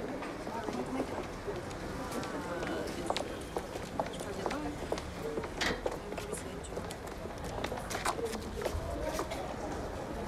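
A busy street crowd murmurs with many voices.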